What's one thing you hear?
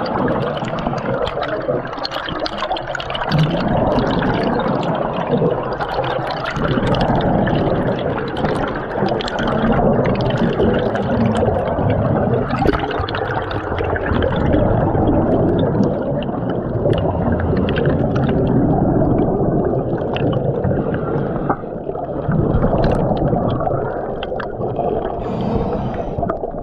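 Bubbles rush and gurgle loudly underwater.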